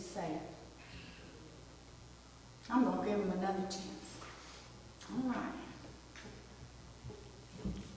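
A woman speaks slowly and calmly into a microphone in an echoing room.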